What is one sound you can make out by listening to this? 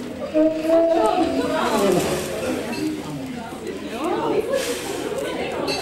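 An elderly man blows out candles with short puffs of breath.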